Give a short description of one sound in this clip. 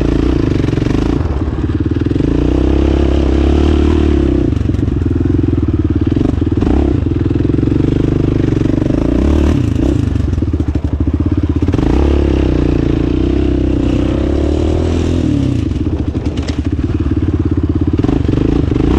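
Tyres churn through loose dirt.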